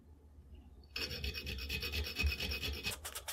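A metal file rasps back and forth across metal.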